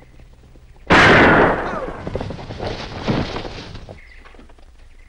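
A rifle fires a loud shot that echoes away.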